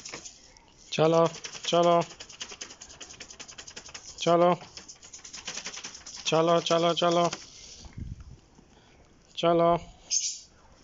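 Chickens squawk loudly in short repeated bursts.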